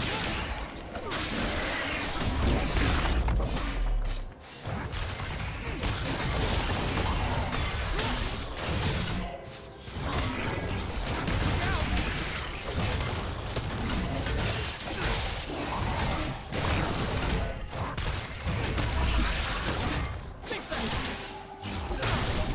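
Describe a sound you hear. Hits land with heavy thuds.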